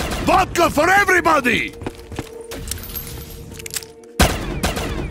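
An electric weapon crackles and zaps.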